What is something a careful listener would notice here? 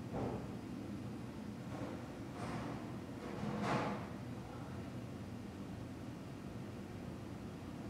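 A man speaks quietly over an online call.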